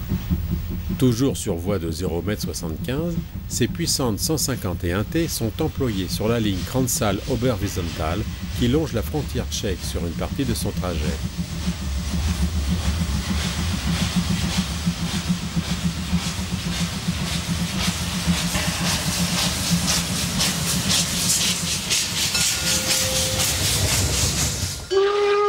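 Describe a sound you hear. A steam locomotive chuffs rhythmically as it pulls away.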